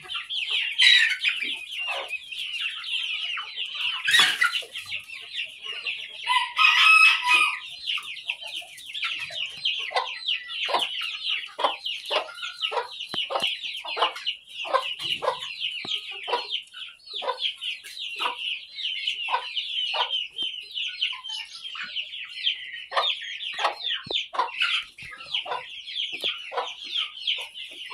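Many chickens chirp and peep constantly close by.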